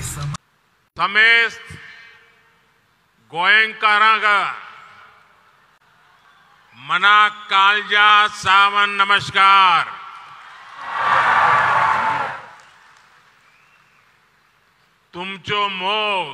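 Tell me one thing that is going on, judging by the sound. A man speaks forcefully into a microphone over loudspeakers, echoing in a large open space.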